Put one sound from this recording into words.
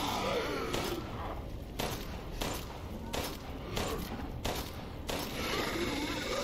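A gun fires a series of sharp shots.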